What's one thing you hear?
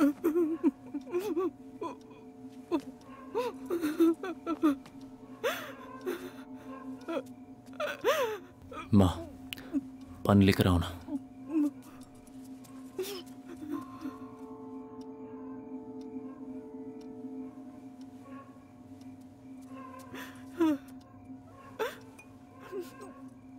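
A middle-aged woman speaks anxiously.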